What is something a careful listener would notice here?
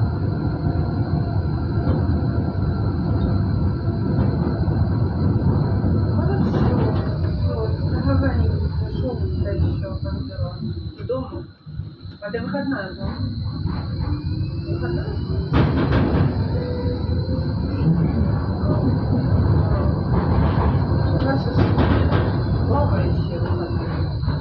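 Cars pass by on the road beside the tram.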